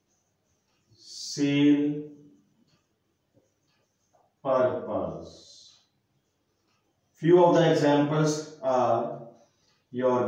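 A man speaks calmly and clearly, as if explaining, in short phrases with pauses.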